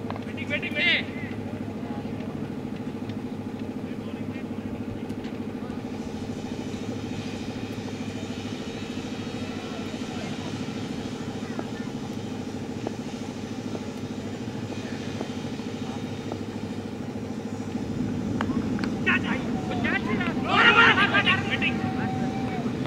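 Young men shout loudly outdoors in an appeal.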